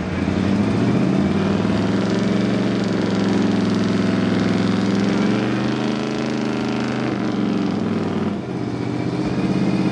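Tyres churn through mud.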